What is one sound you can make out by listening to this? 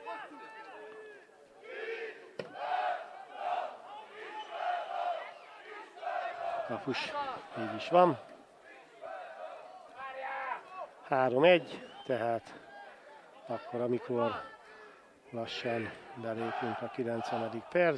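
Men shout to each other across an open field.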